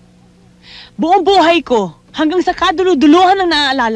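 A young woman speaks close by, with rising emotion.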